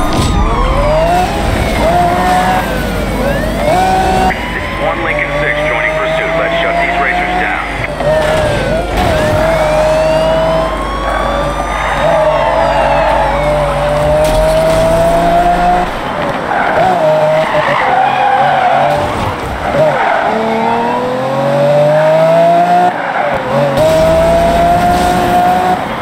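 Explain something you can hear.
A sports car engine roars and revs up through the gears.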